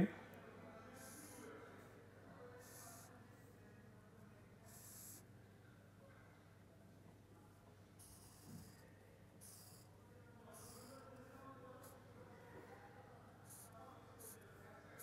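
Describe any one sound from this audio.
A marker squeaks softly across paper in short strokes.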